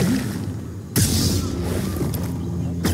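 An energy blade ignites with a hum and a whoosh.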